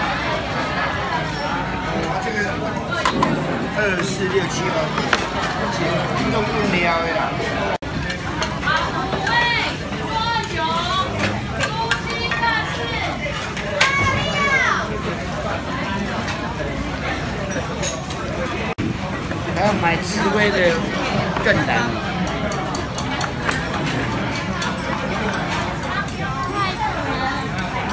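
Many men and women chatter all around in a busy, crowded room.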